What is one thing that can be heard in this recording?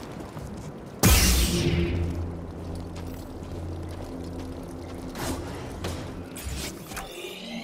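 A lightsaber ignites with a sharp roar and hums steadily.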